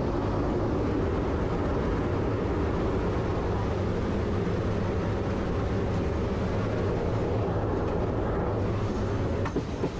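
An electric welding arc crackles and buzzes steadily.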